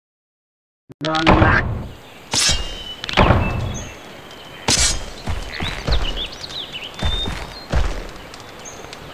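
Heavy armoured footsteps thud and clank on soft ground.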